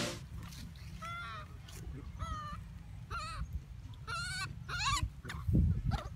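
A baby monkey squeals in high, chirping cries.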